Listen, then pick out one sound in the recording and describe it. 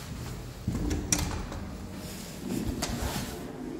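A door handle clicks.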